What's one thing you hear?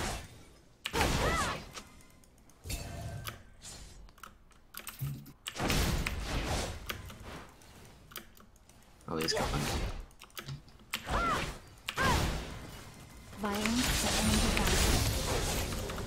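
Game sound effects of spells and hits play.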